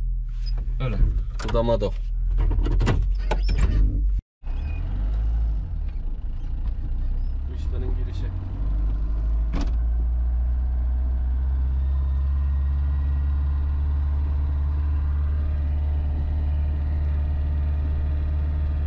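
Tyres crunch and rumble over a gravel track.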